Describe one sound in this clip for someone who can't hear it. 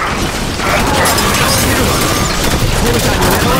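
Rapid gunfire rattles and bursts.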